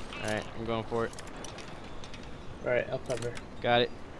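A lock pick clicks and scrapes inside a lock.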